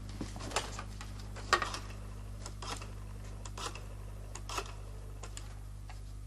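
A woman picks up a telephone receiver with a clatter.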